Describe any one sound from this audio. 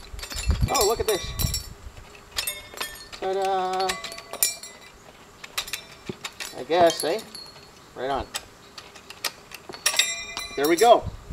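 A metal tool clinks and scrapes against the ground.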